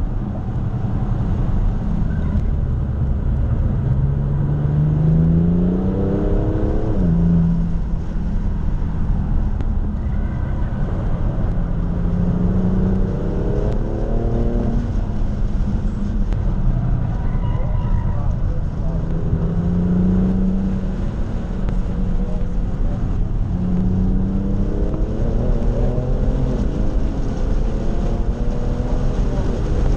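Tyres roar on the track surface.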